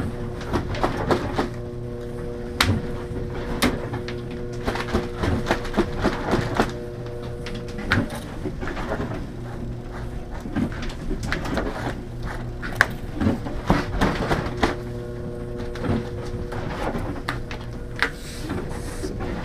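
Objects knock and clatter on a wooden table.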